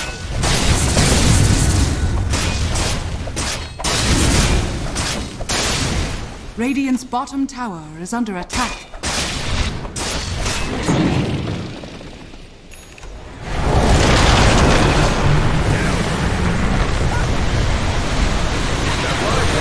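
Weapons clash and strike repeatedly.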